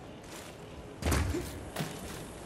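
A heavy body lands with a loud thud on stone.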